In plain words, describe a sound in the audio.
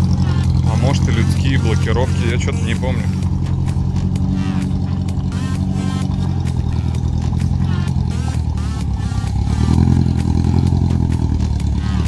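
An off-road vehicle's engine rumbles steadily and revs up as it pushes through mud.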